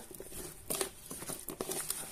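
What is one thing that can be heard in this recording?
A spatula stirs and scrapes potato pieces in a plastic bowl.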